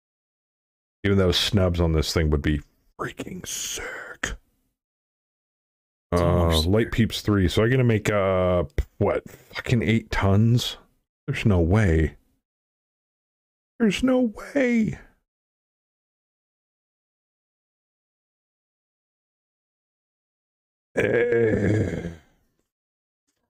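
A man talks calmly and closely into a microphone.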